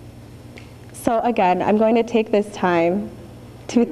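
A young woman speaks into a microphone with a bright, cheerful tone.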